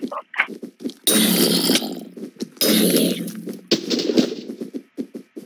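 Gunshots blast loudly in a video game.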